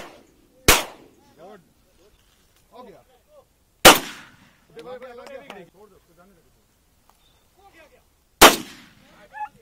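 A shotgun fires loud, sharp blasts that echo across open ground.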